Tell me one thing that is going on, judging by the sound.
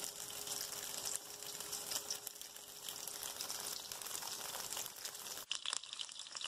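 Steam hisses softly under a pot lid.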